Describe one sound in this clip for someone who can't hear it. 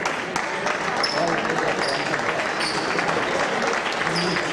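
Basketball shoes squeak on a hardwood court in a large echoing gym.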